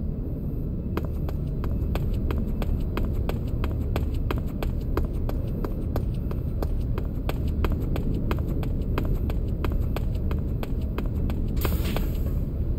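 Quick footsteps run on a hard floor.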